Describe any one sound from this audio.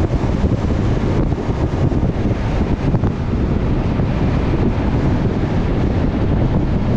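Tyres hum steadily on a paved road.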